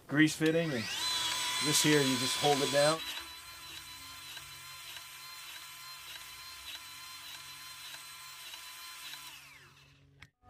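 A battery-powered grease gun whirs, pumping grease into a fitting.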